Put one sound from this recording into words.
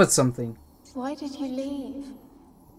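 A woman speaks in a pleading, echoing voice.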